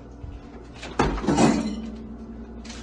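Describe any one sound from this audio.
A refrigerator door opens with a thud and rattle.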